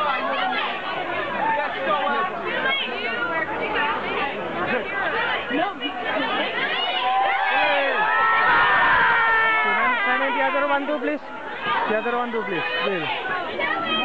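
A crowd of young women and men chatter and call out excitedly close by.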